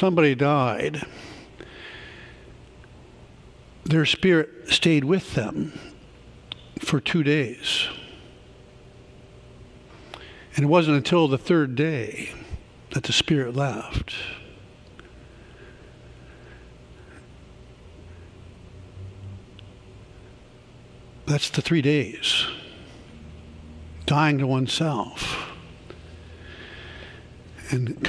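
A man speaks calmly through a microphone in a large echoing hall, with long pauses.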